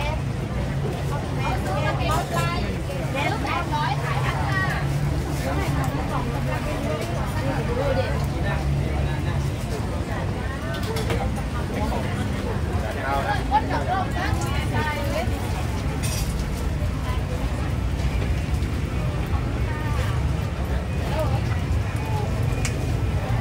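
A busy crowd of men and women chatters all around outdoors.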